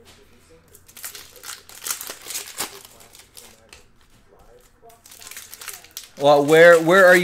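A plastic wrapper crinkles and rustles.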